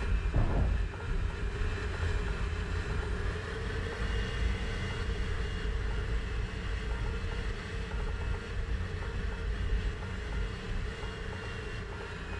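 Wind rushes past the cockpit canopy.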